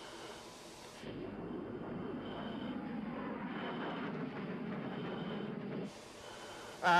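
A jet engine roars loudly as a fighter jet flies past overhead.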